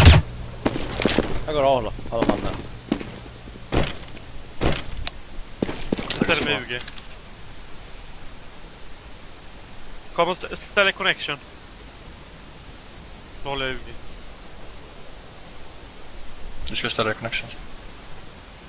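A young man talks casually into a close headset microphone.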